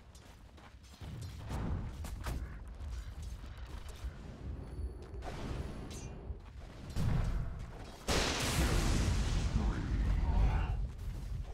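Game fight sounds clash, crackle and thump.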